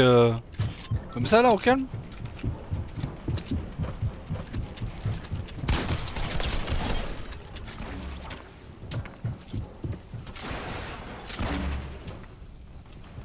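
Rapid clattering and thuds of building pieces being placed in a video game.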